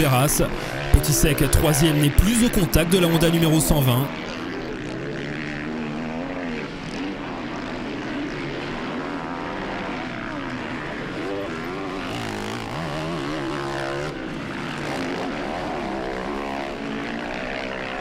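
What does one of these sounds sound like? Motocross bike engines rev and whine loudly, rising and falling in pitch.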